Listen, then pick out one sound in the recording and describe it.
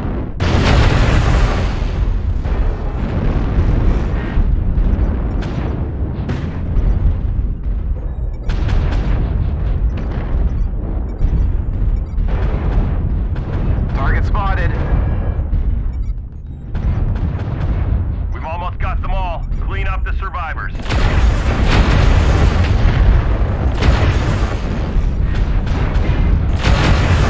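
A heavy machine rumbles deeply and steadily.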